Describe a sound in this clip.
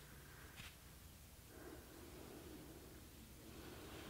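Hands pluck and slide weaving threads on a loom.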